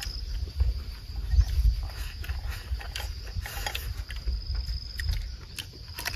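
Two men chew food noisily close by.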